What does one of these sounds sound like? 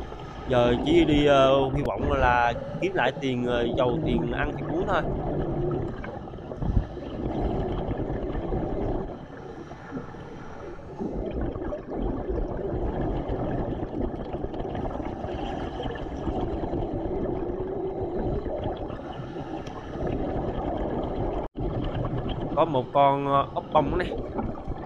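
A steady low underwater rumble of moving water.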